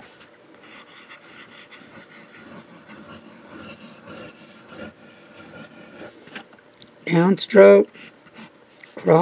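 A pen nib scratches softly across paper.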